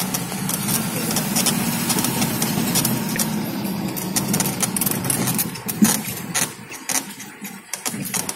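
Tyres crunch and bump over a rough dirt track.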